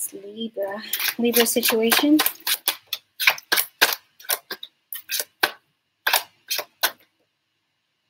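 Fingers tap and scratch on a small wooden box.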